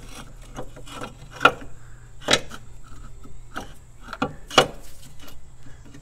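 A metal chain clinks and rattles as it is handled.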